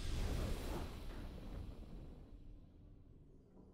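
A triumphant game fanfare rings out and then fades away.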